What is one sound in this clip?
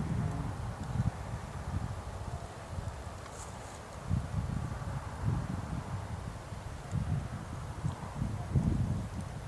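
Wind gusts buffet outdoors in low rumbling bursts.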